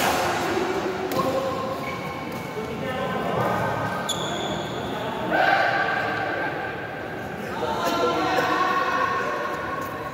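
Men talk and call out in an echoing hall.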